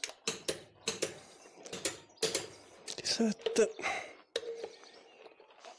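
A ratchet wrench clicks in quick bursts.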